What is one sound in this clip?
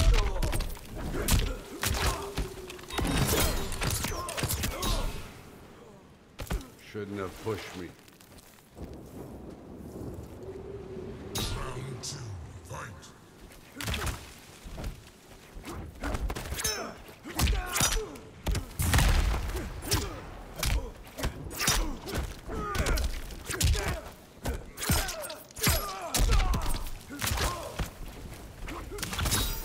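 Punches and kicks land with heavy, sharp thuds in a fast fight.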